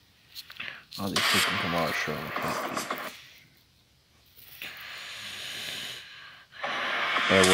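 A man talks close to the microphone in a relaxed voice.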